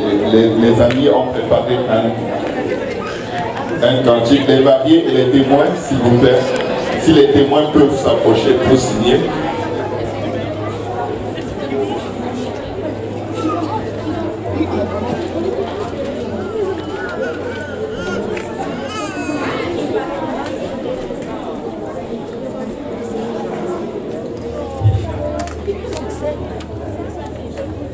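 A crowd of people murmurs and chatters.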